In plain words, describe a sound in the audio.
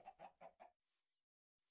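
Chickens cluck.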